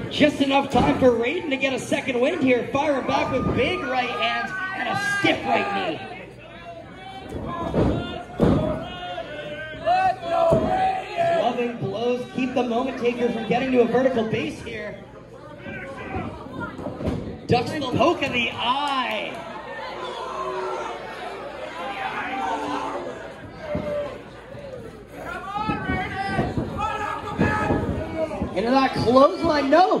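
A crowd of men and women chatter, cheer and shout in an echoing hall.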